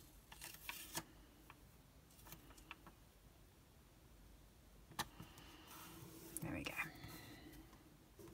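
Paper taps and slides softly against a desk.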